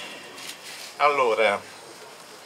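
An elderly man speaks into a microphone over a loudspeaker.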